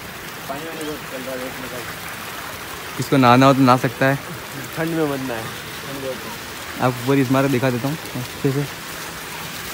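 A young man speaks close by with animation.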